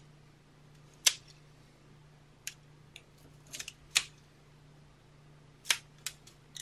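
A hand tool clicks and scrapes on card.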